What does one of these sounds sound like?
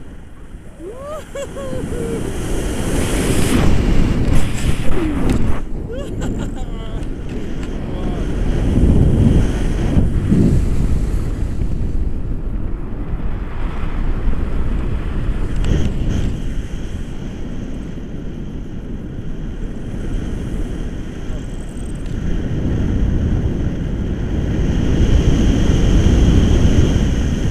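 Strong wind rushes and buffets loudly in the open air.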